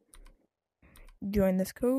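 Keys click as a hand presses buttons on a keypad.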